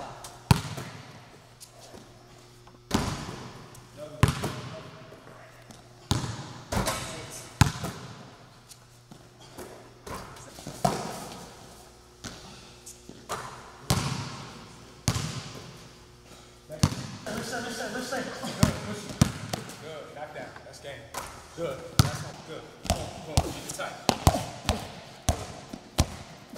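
A basketball bounces hard on a floor in a large echoing gym.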